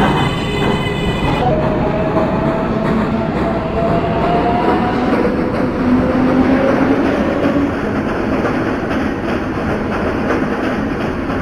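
A subway train rumbles and its motors whine in a rising pitch as it pulls away.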